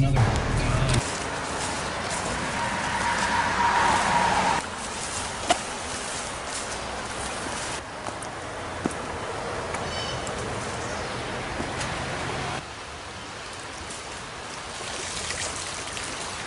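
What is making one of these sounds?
A river rushes and splashes.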